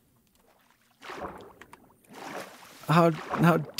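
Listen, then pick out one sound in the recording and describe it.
Water splashes softly as something dives under.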